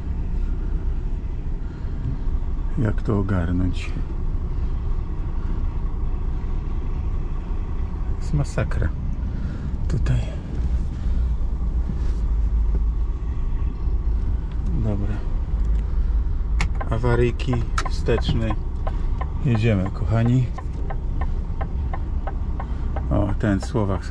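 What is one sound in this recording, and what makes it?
A truck's diesel engine rumbles steadily at low speed.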